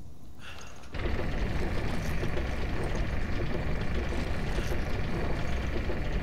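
A heavy wooden winch grinds and rattles as it turns.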